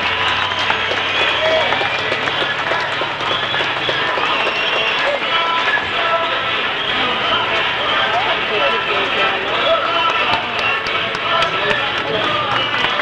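A crowd of people murmurs and calls out all around.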